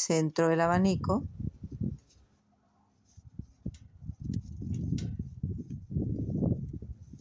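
Yarn rustles softly as a hook pulls it through stitches.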